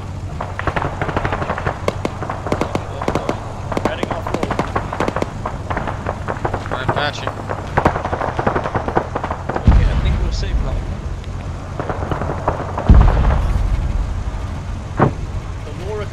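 The vehicle rattles and bumps over a rough dirt road.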